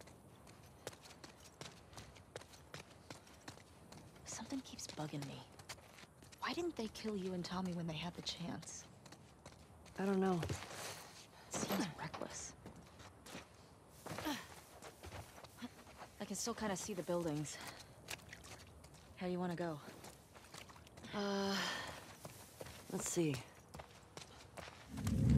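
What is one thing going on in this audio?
Footsteps patter quickly on hard ground and through grass.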